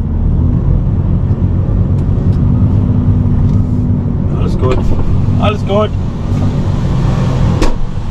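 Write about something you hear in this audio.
A truck's diesel engine rumbles steadily from inside the cab.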